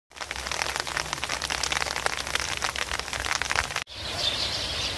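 Wheat stalks rustle in a breeze.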